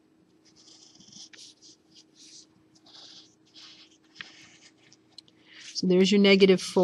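A pencil scratches on paper in short strokes.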